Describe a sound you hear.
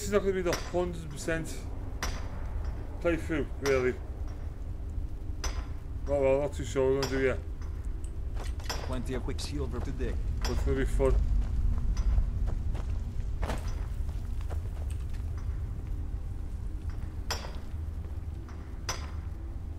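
A pickaxe strikes rock with sharp clinks.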